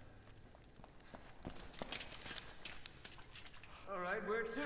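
Footsteps walk along a hard floor.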